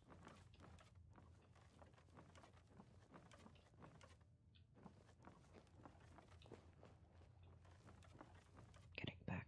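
Footsteps crunch slowly over loose rubble.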